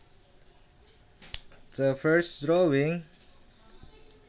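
A marker cap clicks off.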